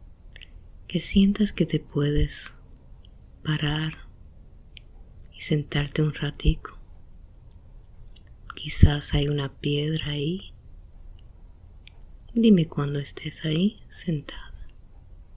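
A young woman mumbles drowsily in her sleep, close by.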